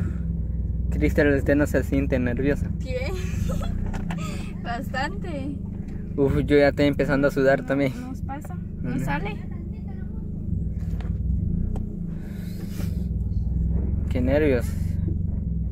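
A young woman speaks with animation close by, inside a car.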